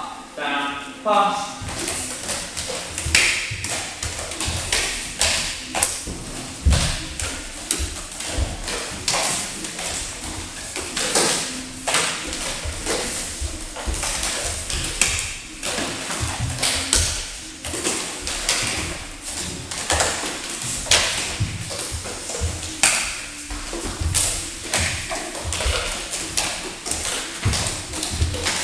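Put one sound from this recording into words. Juggling clubs smack into hands again and again in an echoing room.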